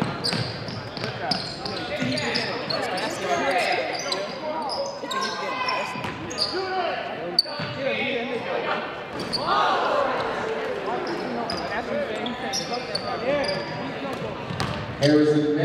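Spectators chatter and call out in an echoing gym.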